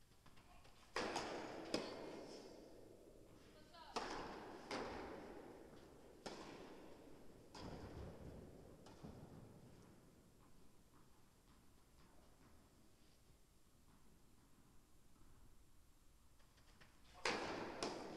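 A tennis ball is struck with a racket, with a sharp pop echoing in a large hall.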